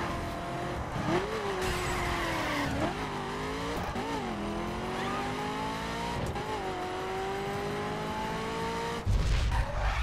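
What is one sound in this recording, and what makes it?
A sports car engine roars and revs up and down through gear shifts.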